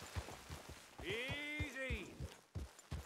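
A horse whinnies.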